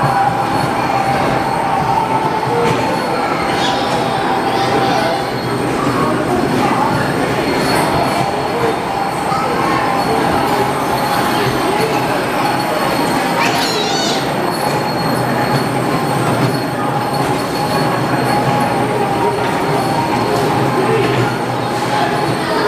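A children's ride train rumbles steadily along its track.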